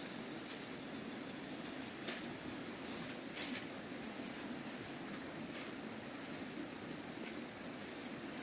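Water splashes lightly as it is scooped from a bucket and tossed out.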